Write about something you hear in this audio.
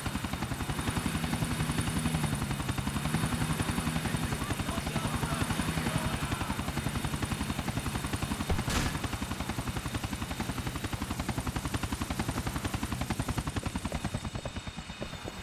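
A helicopter's engine whines steadily.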